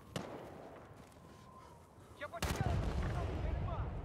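A rifle fires a few shots close by.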